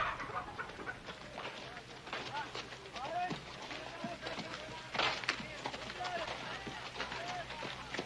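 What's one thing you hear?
Horses' hooves clop slowly on dirt.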